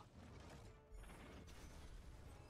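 A large magical explosion bursts.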